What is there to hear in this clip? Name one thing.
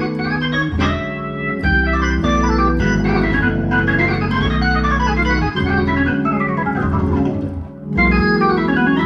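An electric organ plays chords and a lively melody up close.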